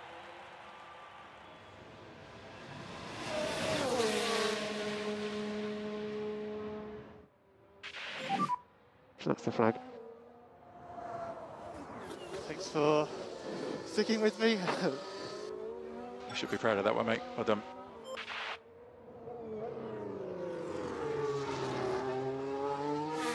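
A racing car engine roars and whines as it passes and changes gear.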